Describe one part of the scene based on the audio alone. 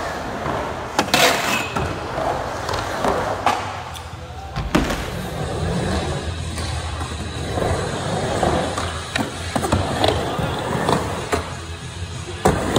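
A skateboard clacks against a ramp's edge.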